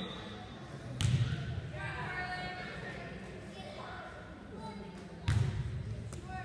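A volleyball is struck with a hard thud.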